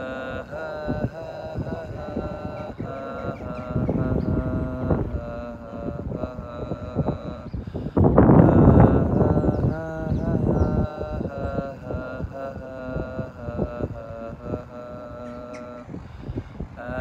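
A young man speaks calmly, close to the microphone.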